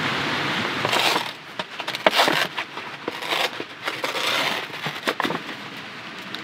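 Foil crinkles as a lid is peeled back.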